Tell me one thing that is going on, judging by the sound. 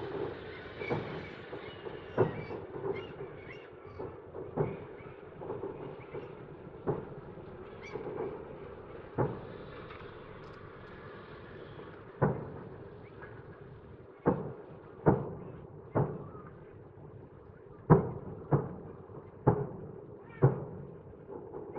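Fireworks crackle and fizzle faintly.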